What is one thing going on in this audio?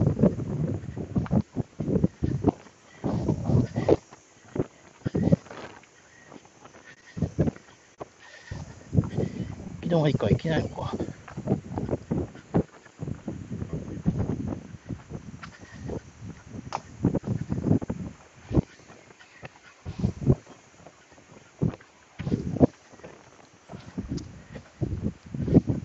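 Footsteps scuff along a paved path.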